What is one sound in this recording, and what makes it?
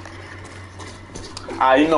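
Footsteps patter quickly on stone steps.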